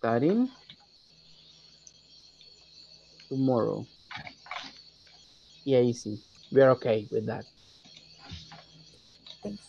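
A man speaks slowly over an online call, dictating words one at a time.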